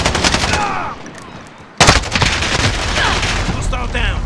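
Rapid gunshots crack and echo.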